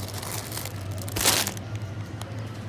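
A plastic snack bag crinkles as it is handled.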